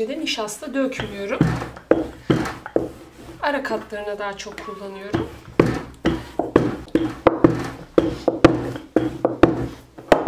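A wooden rolling pin rolls over dough on a board with soft thuds.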